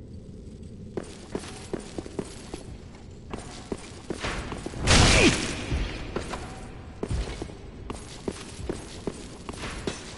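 Heavy armored footsteps clank on stone.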